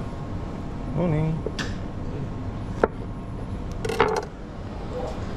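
A knife slices through mushrooms onto a cutting board with soft taps.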